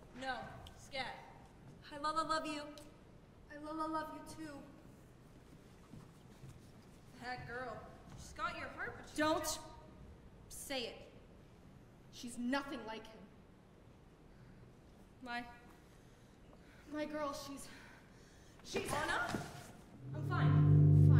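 Women speak clearly and with feeling, heard from a distance in a large hall.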